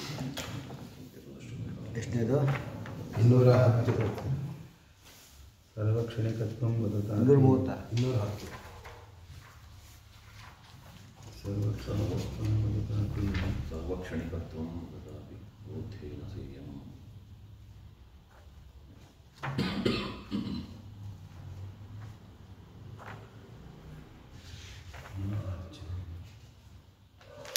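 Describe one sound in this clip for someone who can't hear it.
An elderly man speaks and chants slowly into a close microphone.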